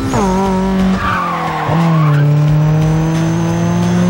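Tyres screech as a car drifts through a bend.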